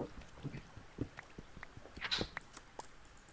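A stone block crunches as it breaks.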